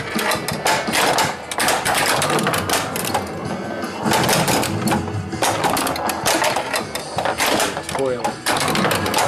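A pinball ball clacks against bumpers and flippers.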